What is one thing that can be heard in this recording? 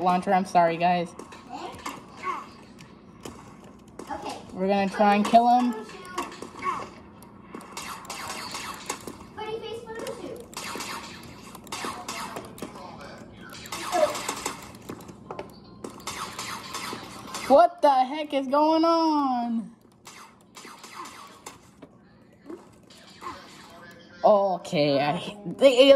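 Video game gunfire pops through small laptop speakers.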